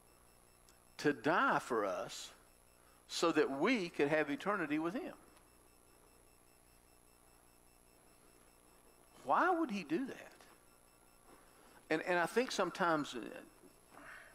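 A middle-aged man speaks calmly in short phrases with pauses, close by.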